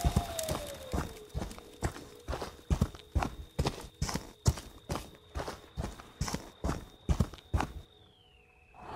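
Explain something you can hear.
Heavy footsteps thud at a steady pace.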